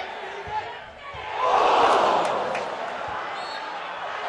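A large football crowd roars and cheers in a stadium.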